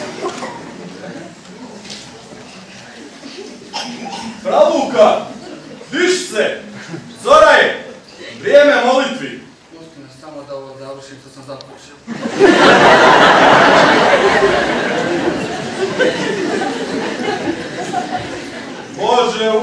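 A group of men laugh heartily.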